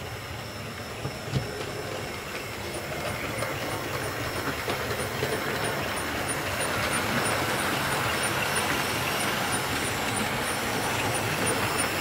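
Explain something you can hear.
A model train rumbles and clatters along the track, growing louder as it comes closer.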